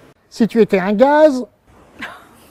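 A man speaks in a high, playful cartoon voice close to a microphone.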